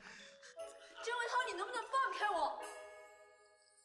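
A young woman speaks pleadingly, close by.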